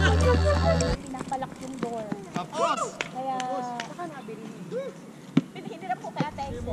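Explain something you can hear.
A basketball bounces on a hard outdoor court.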